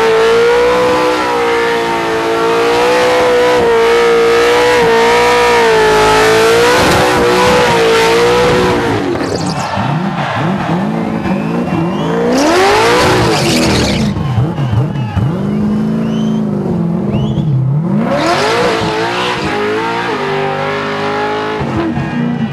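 A car engine roars at high revs, rising and falling.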